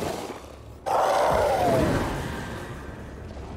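A loud blast of fire roars and slowly dies away.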